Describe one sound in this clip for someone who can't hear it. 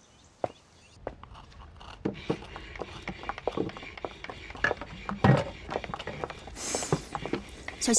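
A chisel scrapes and taps on wood.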